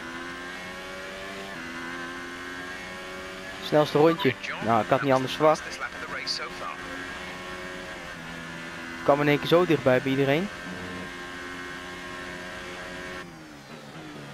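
A Formula One car's engine screams at high revs.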